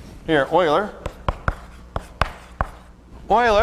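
Chalk taps and clicks against a board.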